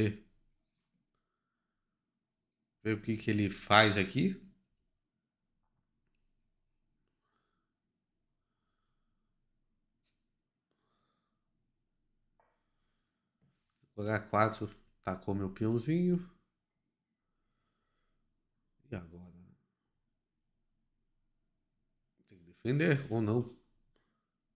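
A young man speaks calmly into a close microphone, in short bursts with long pauses.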